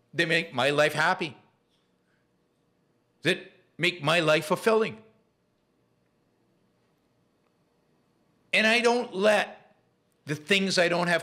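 An older man speaks calmly into a close microphone, in short bursts with pauses.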